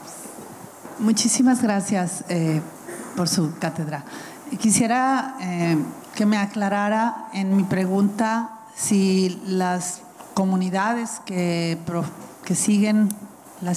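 A woman speaks calmly into a microphone over loudspeakers.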